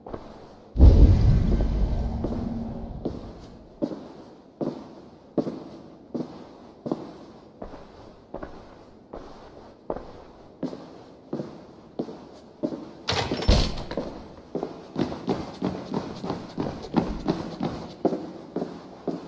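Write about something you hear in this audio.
Footsteps thud slowly and evenly on a wooden floor.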